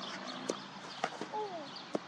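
A cricket bat strikes a ball with a sharp knock.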